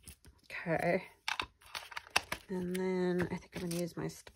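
A small plastic case knocks and clicks against a tabletop.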